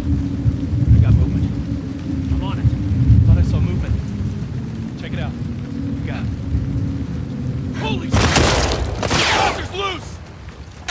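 A man calls out from a distance.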